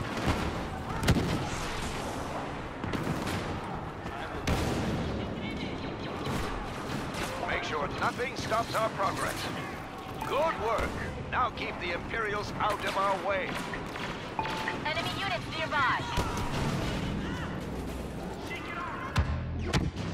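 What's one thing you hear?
Laser rifles fire in sharp, echoing shots.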